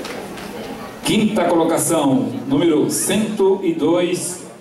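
A woman speaks with animation over a loudspeaker.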